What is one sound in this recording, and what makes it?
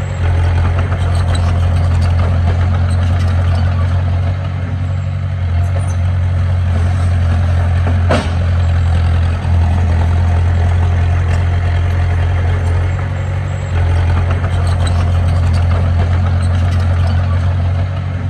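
Dirt and rocks scrape and tumble as a bulldozer pushes them.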